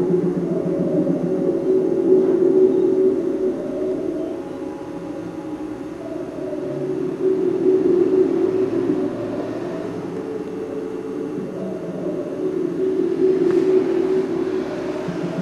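A small glass bottle clinks softly as a hand handles it.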